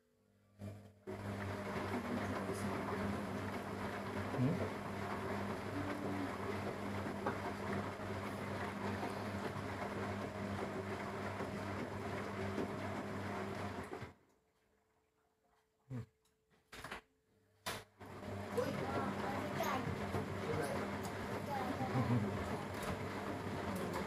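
A washing machine hums and churns steadily.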